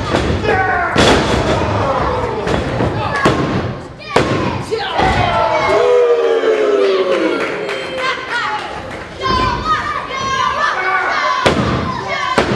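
Bodies slam hard onto a wrestling mat.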